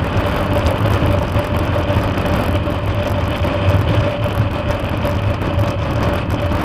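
A motorcycle engine hums steadily at highway speed.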